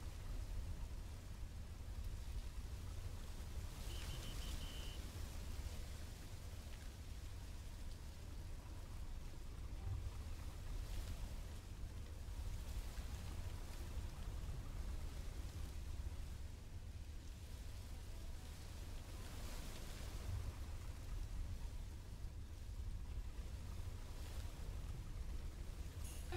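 Freight wagons rumble and clatter over the rails.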